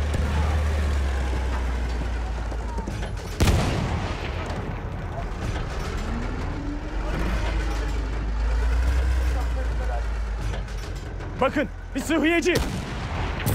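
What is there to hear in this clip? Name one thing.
A heavy armoured vehicle's engine rumbles steadily as it drives over sand.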